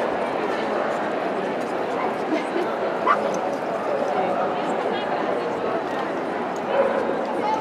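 A crowd murmurs and chatters steadily in a large echoing hall.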